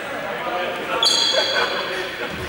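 Sports shoes squeak on a wooden court floor.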